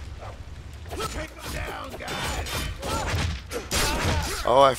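Blows land with heavy, quick thuds and slashes.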